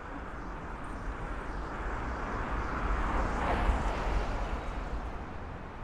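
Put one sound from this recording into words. A van drives past on the street, growing louder and then fading.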